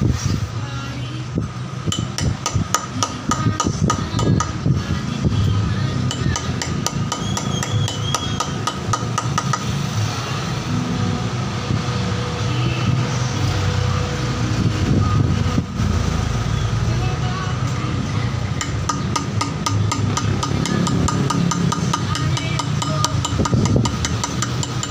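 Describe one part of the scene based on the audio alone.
A hammer taps a hand chisel in rapid light strokes, carving into granite.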